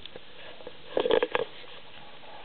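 A puppy gives a few short, high yips.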